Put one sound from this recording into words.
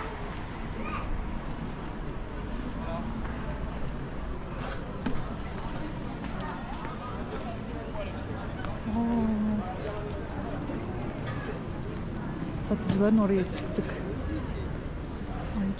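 A crowd of people chatters in an open outdoor square.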